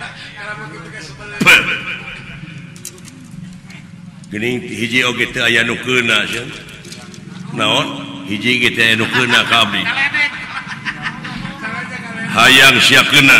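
A man speaks dramatically in changing voices through a loudspeaker.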